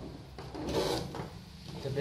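Small metal screws clink faintly on a tabletop.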